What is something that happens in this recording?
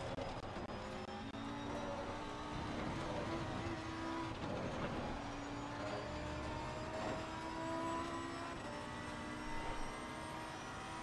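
A race car engine roars at high revs and shifts up through the gears.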